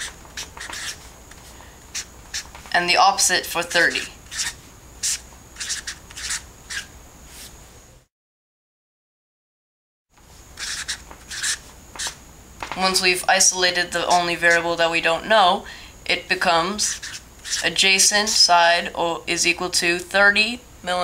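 A marker squeaks and taps as it writes on a board.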